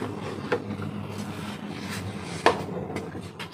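A metal spoon clinks against the side of a pan.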